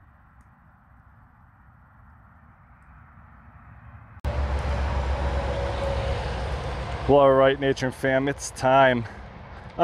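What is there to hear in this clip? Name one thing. A wood fire crackles and burns.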